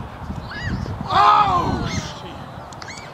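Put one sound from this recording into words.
Young men cheer loudly.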